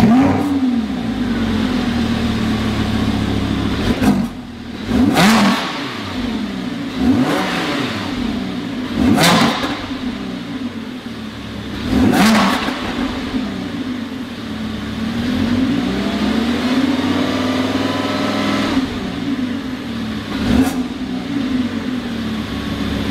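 A sports car engine idles loudly with a deep rumble.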